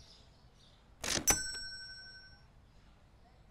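A card payment terminal gives a short ringing chime.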